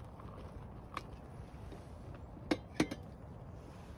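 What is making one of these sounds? A metal kettle clinks against something.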